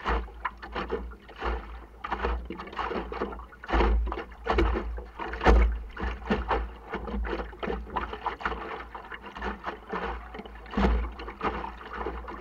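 Water splashes and slaps against a boat's hull.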